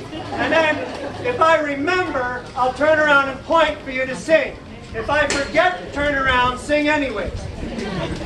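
A man speaks loudly and with animation to an audience, heard close.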